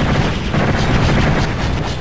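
A magic weapon fires with a loud crackling blast.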